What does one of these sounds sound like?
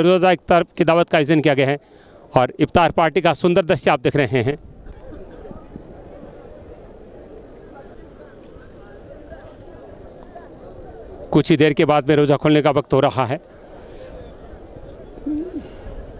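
A large crowd murmurs and chatters in the background.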